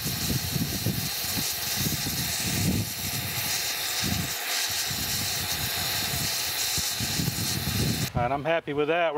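A gas torch hisses and roars steadily.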